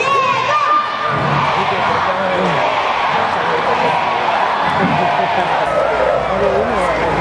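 A large crowd cheers and chatters in an open stadium.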